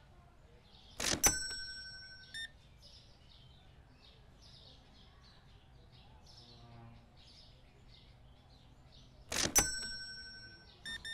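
A payment terminal chimes loudly.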